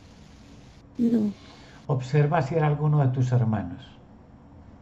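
A middle-aged man speaks briefly over an online call, close to the microphone.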